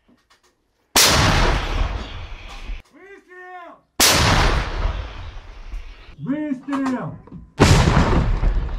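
A large gun fires with loud, booming blasts.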